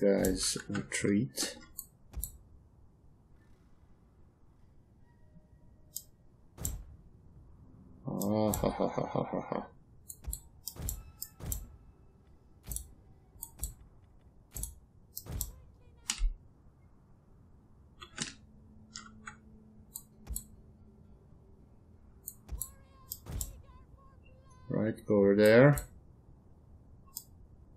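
Short game interface clicks sound at irregular intervals.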